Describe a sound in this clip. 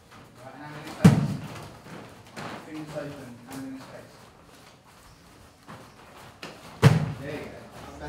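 A kick slaps hard against a hand-held pad.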